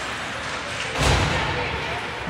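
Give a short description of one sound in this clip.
A puck thuds against the boards.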